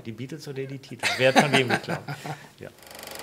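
A middle-aged man laughs heartily.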